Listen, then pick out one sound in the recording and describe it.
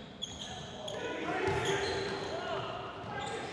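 Men call out to each other across an echoing gym.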